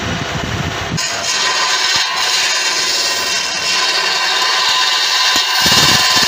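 A chisel scrapes against spinning wood with a steady hiss.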